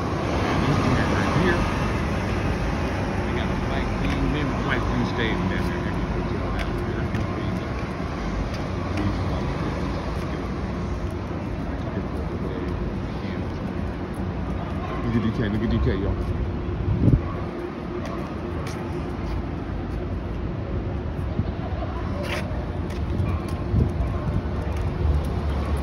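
A dog's claws tap lightly on pavement.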